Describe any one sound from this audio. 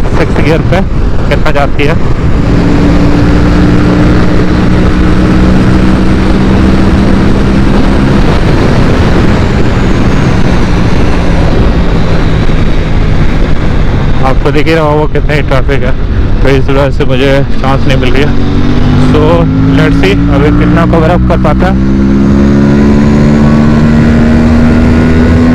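A motorcycle engine hums steadily and rises in pitch as it speeds up.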